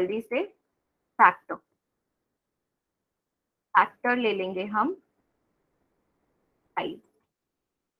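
A young woman speaks calmly into a microphone over an online call, in short phrases with pauses.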